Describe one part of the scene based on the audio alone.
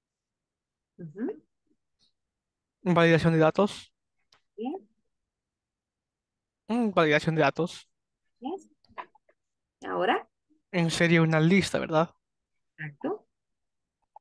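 A young woman speaks calmly into a microphone, in short phrases with pauses.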